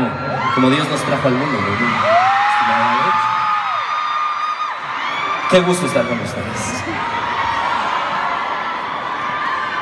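A crowd screams and cheers loudly in a large hall.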